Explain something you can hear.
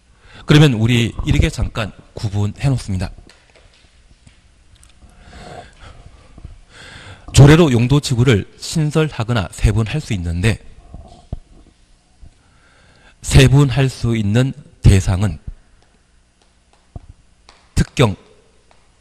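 A man speaks with animation through a microphone and loudspeaker.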